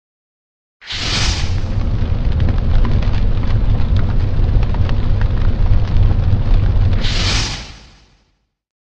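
A fire roars loudly with crackles.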